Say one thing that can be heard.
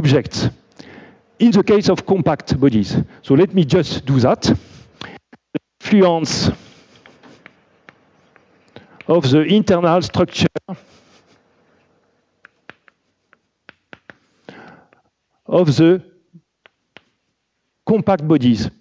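A man lectures calmly in a room with a slight echo.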